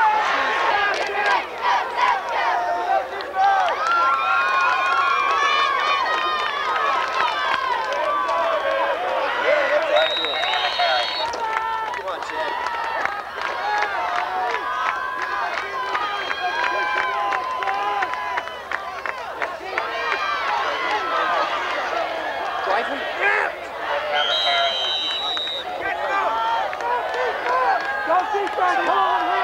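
A crowd of spectators talks and cheers close by.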